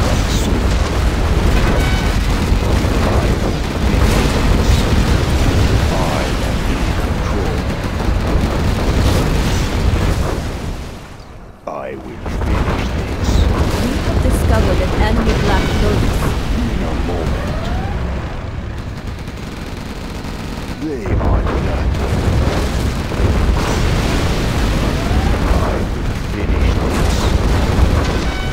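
Tank cannons and guns fire in rapid bursts.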